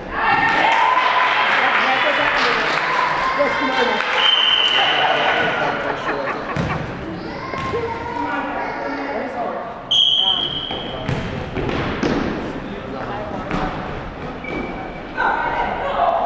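Young women call out and shout to each other in a large echoing gym.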